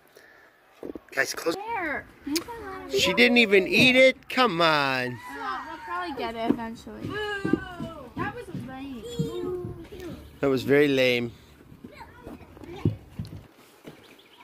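Young children talk and call out excitedly close by.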